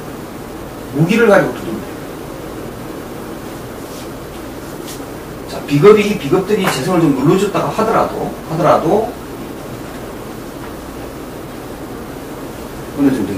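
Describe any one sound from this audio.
A middle-aged man speaks calmly, close by, in short bursts with pauses.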